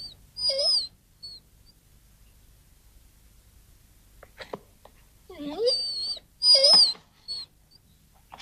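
A dog whines in high, drawn-out cries.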